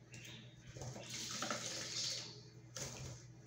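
A small bird splashes in a basin of water.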